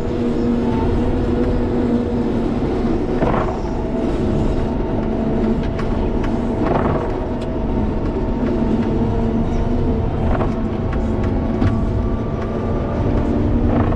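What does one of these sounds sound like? A plow blade scrapes and pushes snow.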